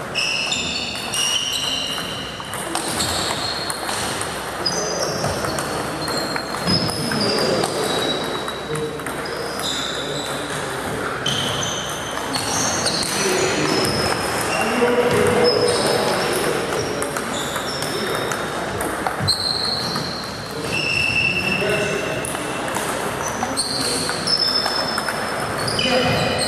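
A ping-pong ball clicks back and forth off paddles and a table in an echoing hall.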